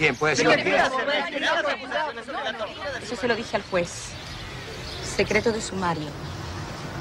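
A young woman speaks into microphones close by.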